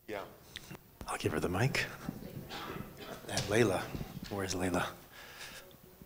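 A second man speaks through a microphone.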